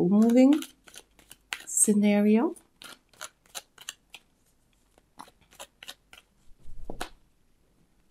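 Playing cards are shuffled with quick, soft flicks.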